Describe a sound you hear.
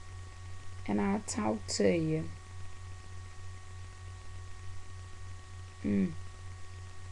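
A woman speaks calmly and briefly into a nearby microphone.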